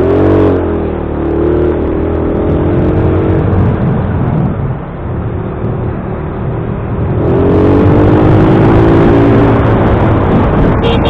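A motorcycle engine hums steadily, rising in pitch as it speeds up.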